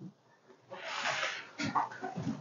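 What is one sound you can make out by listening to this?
A plastic tub scrapes across a wooden table.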